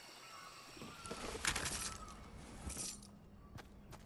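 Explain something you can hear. A wooden chest creaks open with a bright, shimmering chime.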